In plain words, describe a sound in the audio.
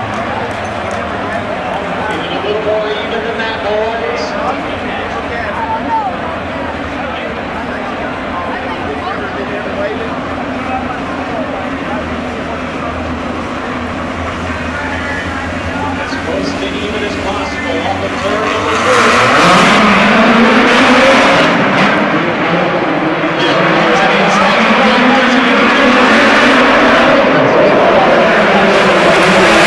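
Racing car engines roar and whine as the cars speed by.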